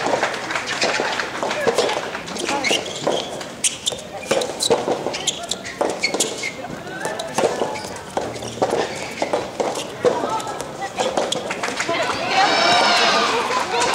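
A racket strikes a tennis ball again and again in a rally.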